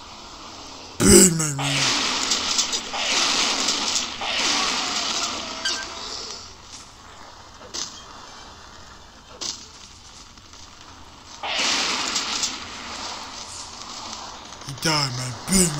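An explosion roars and crackles with fire.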